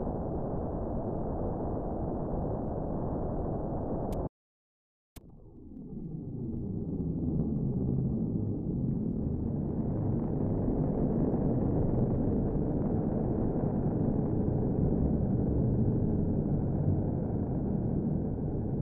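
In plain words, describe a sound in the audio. A low rushing wind roars steadily.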